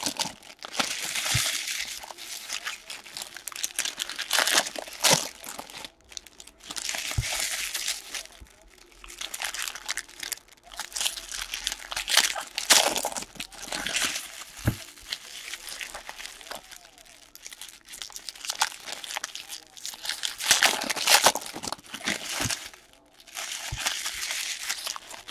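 Foil wrappers crinkle and rustle as packs are torn open.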